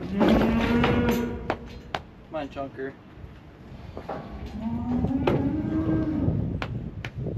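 A cow bellows loudly nearby.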